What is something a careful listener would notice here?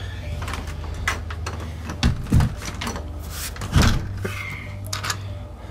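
A door handle rattles and clicks as it turns.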